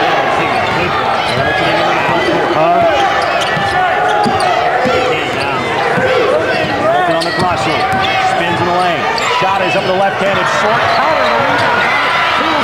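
A crowd murmurs in a large echoing arena.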